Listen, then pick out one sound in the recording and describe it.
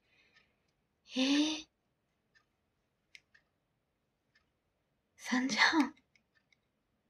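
A young woman speaks briefly and softly close by, in short bursts.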